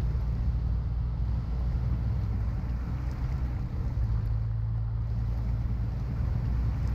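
A truck engine rumbles low and steady as the truck churns through mud.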